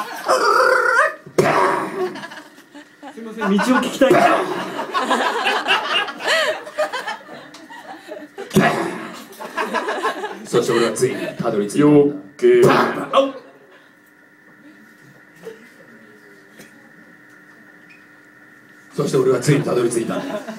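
A man sings loudly into a microphone over loudspeakers.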